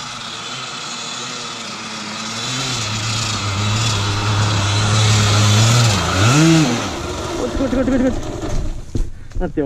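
A dirt bike engine revs and roars as it climbs closer.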